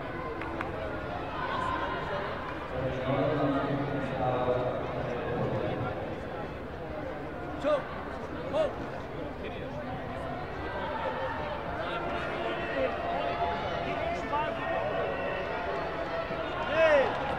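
A crowd chatters and murmurs in a large echoing hall.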